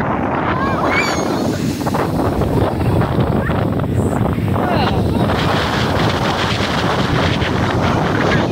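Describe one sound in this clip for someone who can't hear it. Waves surge and wash noisily over the shore.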